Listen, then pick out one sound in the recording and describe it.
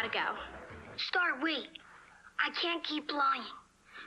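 A young boy talks on a phone.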